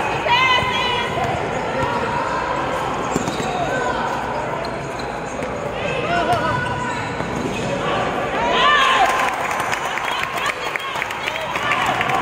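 A basketball bounces on the hard floor.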